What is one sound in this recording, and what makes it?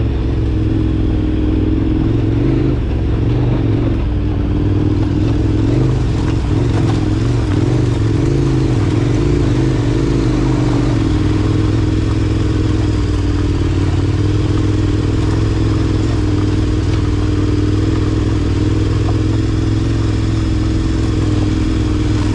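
Tyres crunch and rattle over loose stones.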